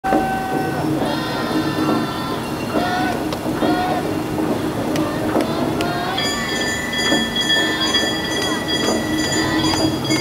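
Lively music with singing plays loudly through loudspeakers outdoors.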